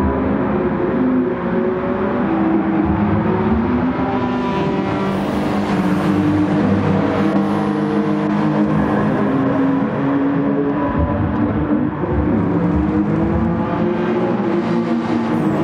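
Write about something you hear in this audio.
Tyres squeal on asphalt through the corners.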